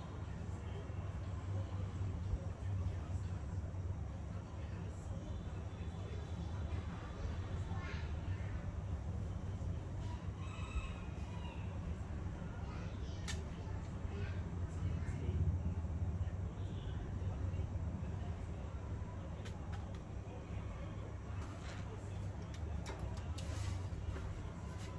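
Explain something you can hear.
Small metal parts click and rattle.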